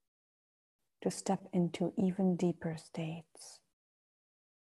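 A woman speaks calmly and softly, close to a microphone.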